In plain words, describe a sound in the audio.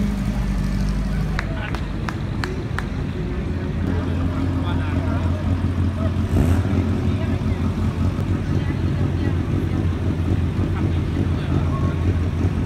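A crowd murmurs outdoors in the background.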